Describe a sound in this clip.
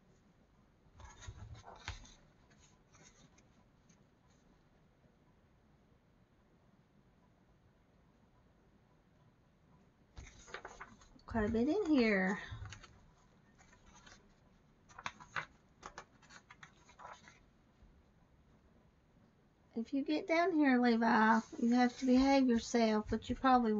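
Paper pages rustle and flap as they are turned by hand.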